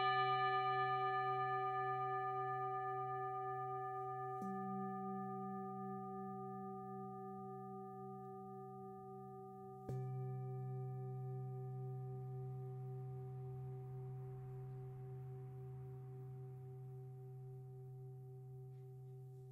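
Singing bowls ring out with a long, shimmering hum that slowly fades.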